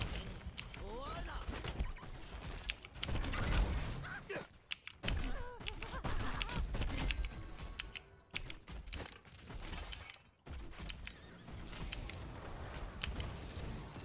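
Game spells and attacks crackle and clash in quick bursts.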